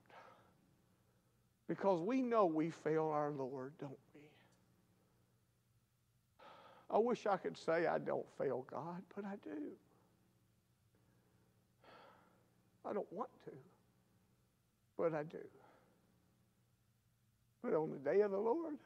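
An older man preaches with animation into a microphone, in bursts with pauses.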